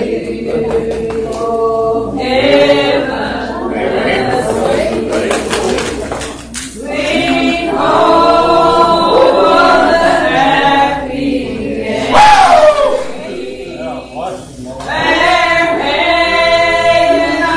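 A congregation of men and women sings together in an echoing hall.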